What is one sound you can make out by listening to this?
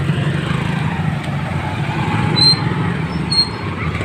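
A motorcycle engine idles close by.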